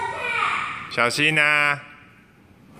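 A young child squeals loudly.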